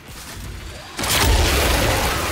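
A heavy blow lands with a loud crash and rumble.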